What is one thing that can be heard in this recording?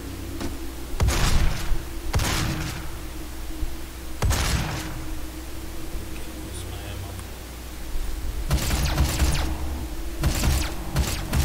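Gunshots blast in short, loud bursts.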